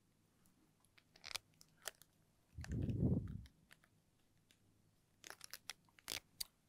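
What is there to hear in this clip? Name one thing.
A marker taps and squeaks on a glass board.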